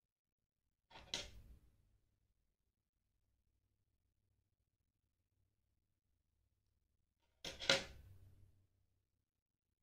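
A small object is set down on a table with a knock.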